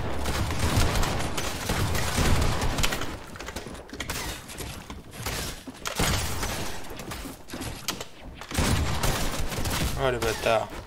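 Game building pieces clatter and thud in quick bursts.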